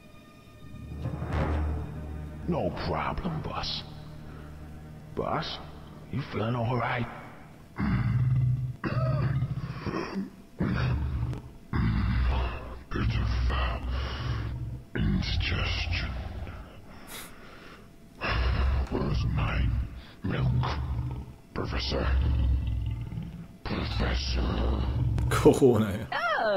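A man talks into a microphone with animation, close up.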